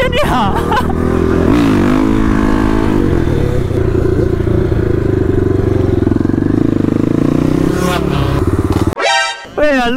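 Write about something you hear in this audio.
A motorcycle engine roars loudly up close, revving up and down.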